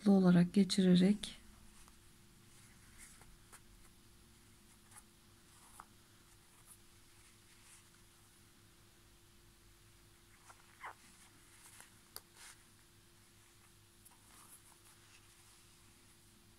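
Yarn rustles softly as hands pull it through knitted fabric.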